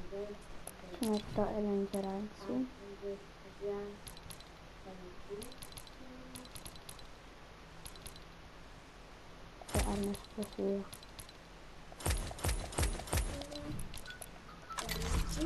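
Menu selection clicks tick repeatedly in a video game.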